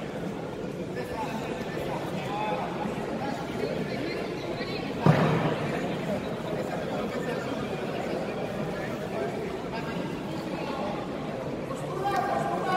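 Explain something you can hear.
A crowd of people talk and call out in a large echoing hall.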